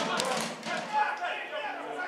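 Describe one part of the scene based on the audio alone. A football is kicked.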